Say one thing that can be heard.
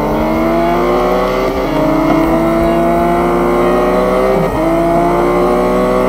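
A racing car engine revs hard, rising in pitch and dropping sharply at each gear change.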